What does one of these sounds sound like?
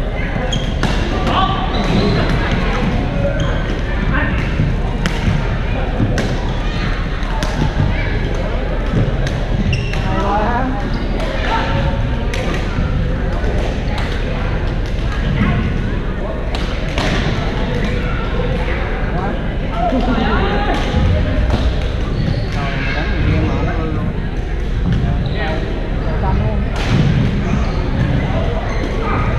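Shuttlecocks are struck with rackets in sharp pops across a large echoing hall.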